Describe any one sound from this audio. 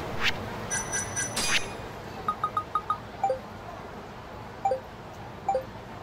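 Short electronic beeps chime, one after another.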